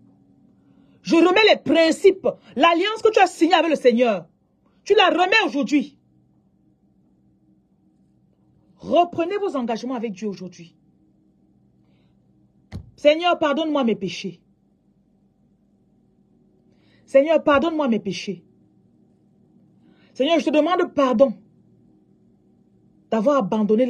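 A woman speaks close to the microphone in short, emphatic phrases with pauses between them.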